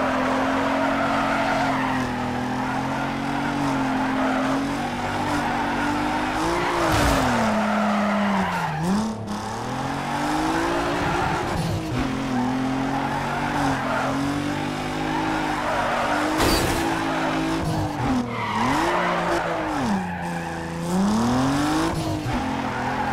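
A car engine revs up and down hard.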